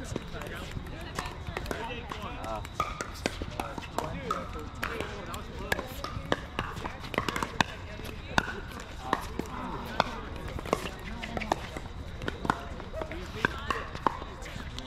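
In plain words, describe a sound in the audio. Paddles hit a plastic ball with sharp pops, again and again.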